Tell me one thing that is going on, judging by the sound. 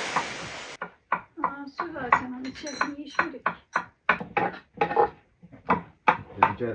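A knife chops on a wooden board with quick, sharp knocks.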